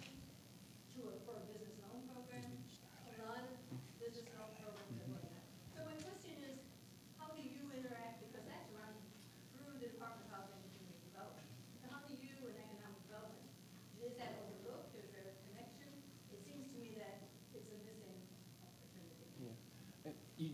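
A woman speaks steadily, unamplified and a little distant.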